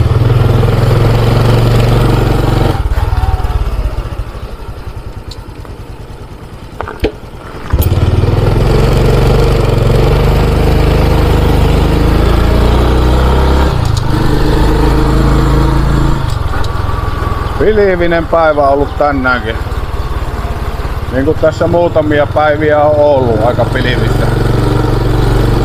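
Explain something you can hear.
A motorbike engine hums steadily, easing off briefly and then picking up again.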